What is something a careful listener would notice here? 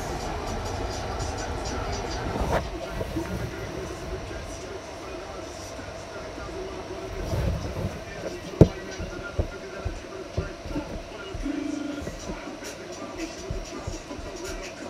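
Music plays from a television speaker in a room.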